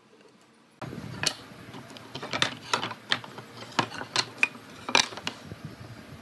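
Wooden boards knock against a wooden table.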